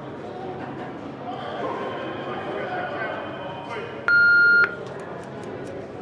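Switches click on a control panel.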